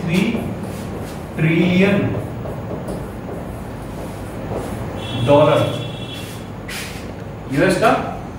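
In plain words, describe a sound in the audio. A young man speaks clearly into a close microphone.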